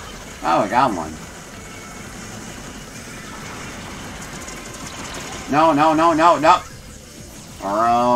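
A man talks animatedly into a close microphone.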